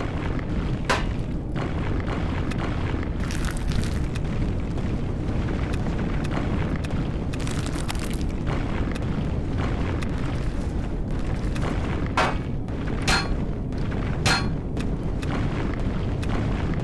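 A machine drones with a steady low rumble.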